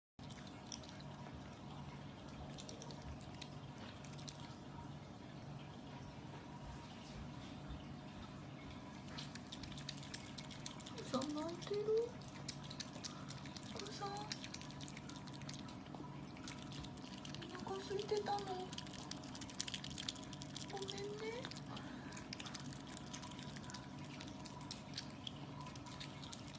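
An otter crunches and chews food with wet smacking.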